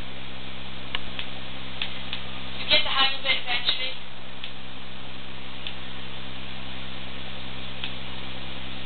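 Sharp game sound effects pop through a small television speaker.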